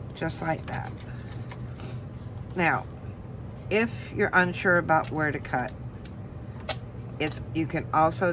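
Paper rustles softly as it is folded and handled.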